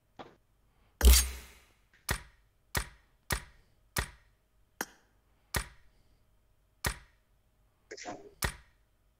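Short game menu clicks and chimes sound in quick succession.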